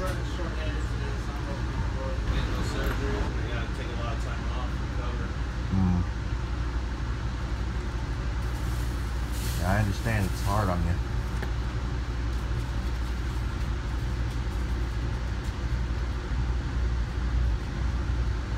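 A bus engine rumbles steadily, heard from inside.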